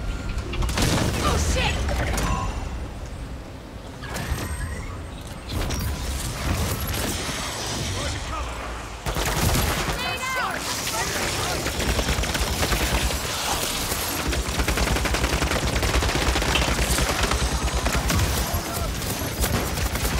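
Gunfire and explosions crackle and boom from a game.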